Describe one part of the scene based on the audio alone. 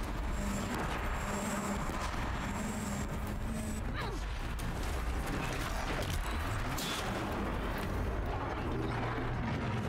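Explosions rumble and crackle loudly.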